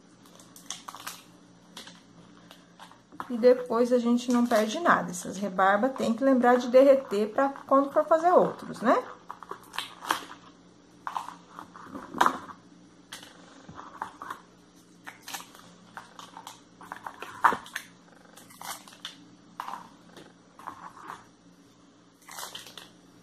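Paper cups rustle softly as fingers peel them.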